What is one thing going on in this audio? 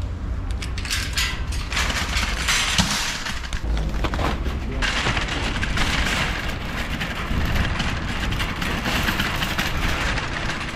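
A shopping cart rattles as it rolls over pavement.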